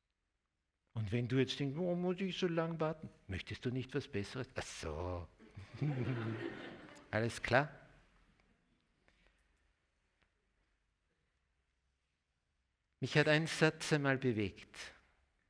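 An elderly man speaks with animation to an audience through a microphone.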